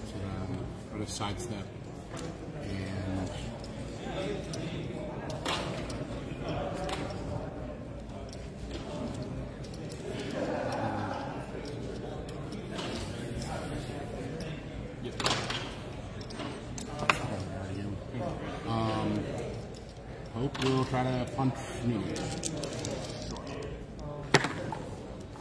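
Plastic game pieces click on a tabletop.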